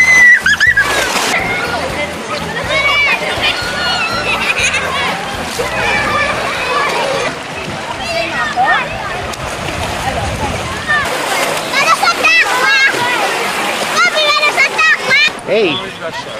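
Children shout and laugh in an outdoor pool.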